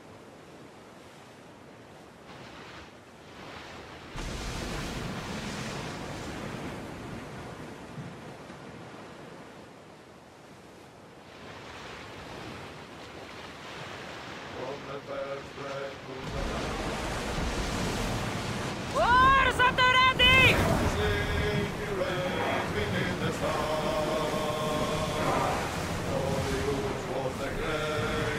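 Water splashes and rushes against a wooden ship's hull.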